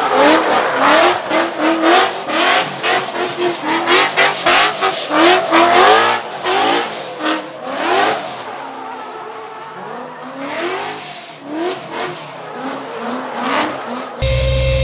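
Tyres screech as a car drifts on pavement.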